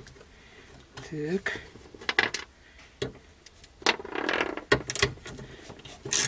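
Metal parts clink together.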